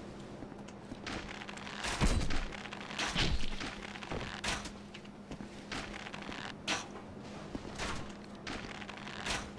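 A sword swishes through the air again and again.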